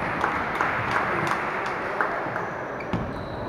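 A table tennis ball clicks quickly back and forth on paddles and the table in a large echoing hall.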